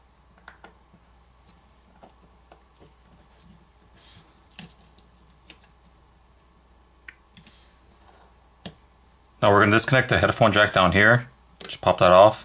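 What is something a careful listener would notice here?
A small metal tool clicks and scrapes against a hard frame.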